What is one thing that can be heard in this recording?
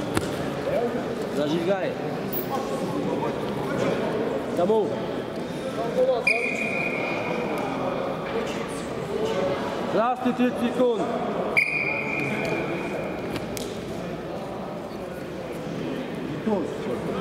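Men call out in a large echoing hall.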